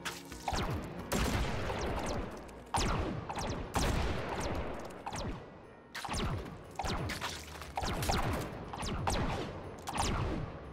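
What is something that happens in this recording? Guns fire in loud bursts of booming shots.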